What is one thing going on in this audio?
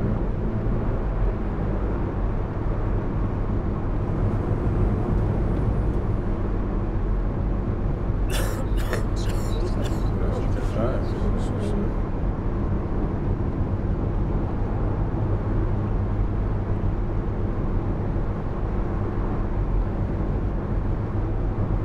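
A bus engine hums steadily as the bus drives along a road.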